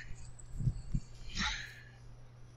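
Footsteps thud softly on grass.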